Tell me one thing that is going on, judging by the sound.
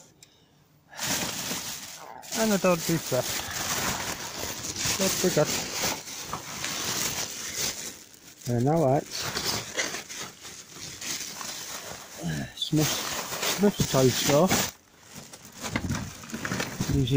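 Plastic bags rustle and crinkle up close.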